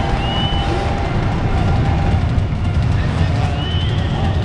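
Motorcycle engines roar and rev.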